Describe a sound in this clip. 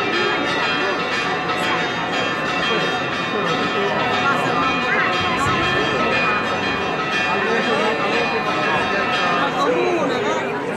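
A brass band plays a tune outdoors.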